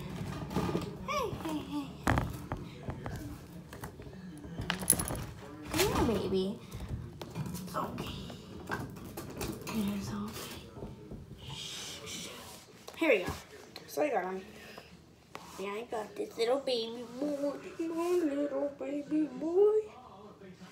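A young girl talks close by in a casual, lively way.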